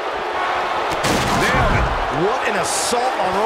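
A wrestler crashes heavily through a table.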